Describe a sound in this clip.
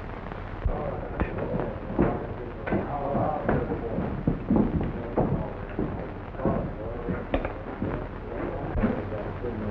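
Dishes and cutlery clink on a table.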